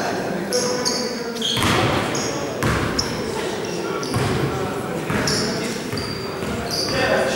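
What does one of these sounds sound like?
Men talk casually in the background of an echoing hall.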